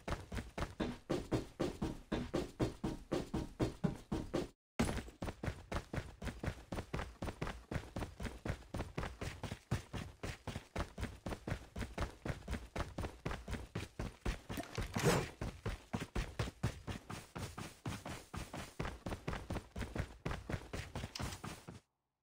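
Footsteps run quickly and steadily over hard ground.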